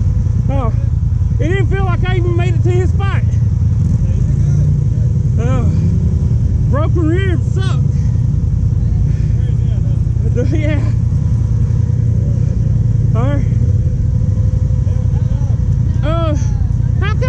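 Quad bike engines idle with a steady low rumble.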